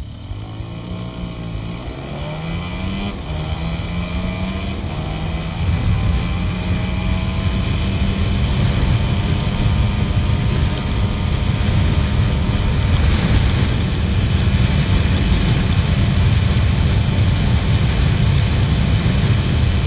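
A scooter engine revs up and hums steadily as it speeds along.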